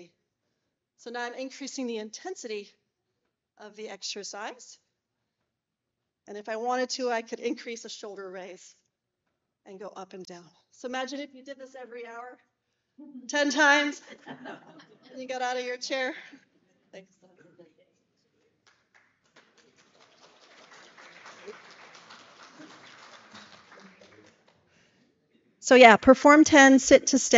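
A woman speaks through a microphone, calmly explaining.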